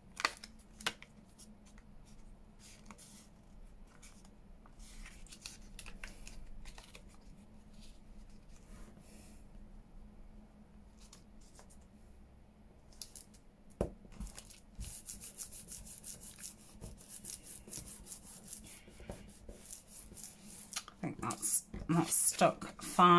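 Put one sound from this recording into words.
Paper rustles and crinkles as hands fold and handle it.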